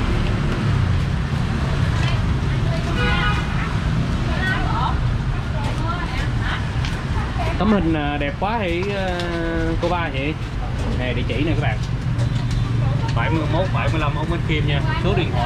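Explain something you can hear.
People chatter nearby.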